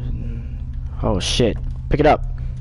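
A man speaks with animation close to a headset microphone.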